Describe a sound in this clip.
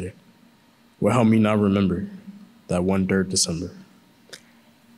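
A young man speaks into a microphone in an echoing hall.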